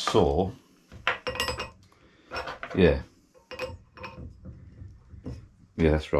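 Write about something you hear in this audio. A metal part clinks as it is handled.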